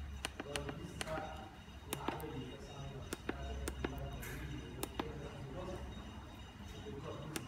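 A finger taps plastic buttons with soft clicks.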